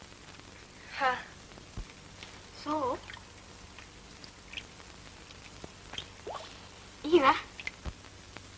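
A woman speaks warmly and smiles.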